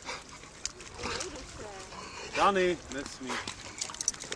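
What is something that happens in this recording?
Dogs whine and yelp nearby.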